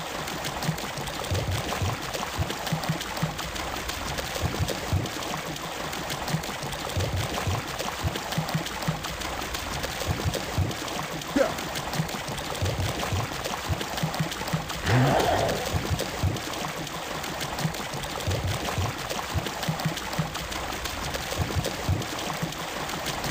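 Hooves clop steadily on a hard floor.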